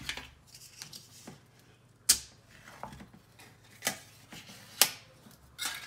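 A foil seal crinkles and tears as it is peeled back.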